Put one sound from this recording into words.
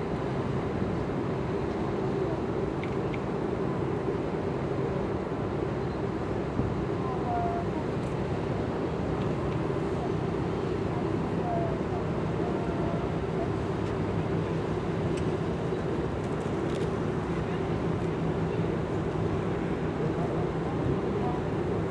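Water churns and rushes in a ship's wake.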